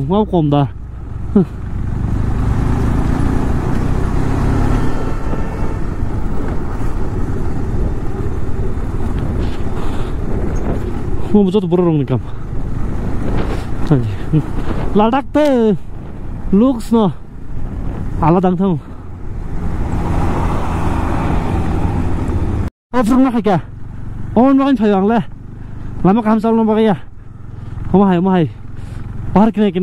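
A motorcycle engine hums steadily close by.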